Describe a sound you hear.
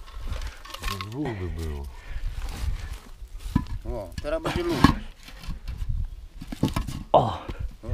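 Hollow clay bricks knock and scrape against each other.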